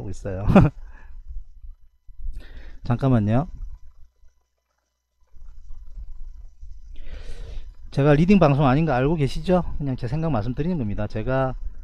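A man talks through a microphone in a calm, explaining way.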